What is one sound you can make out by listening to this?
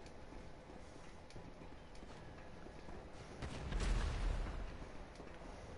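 Footsteps run along a hard floor.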